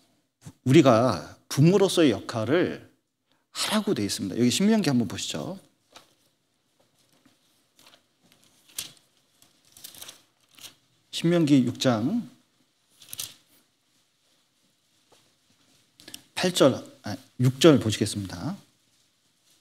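A middle-aged man speaks with emphasis into a microphone, in bursts with pauses.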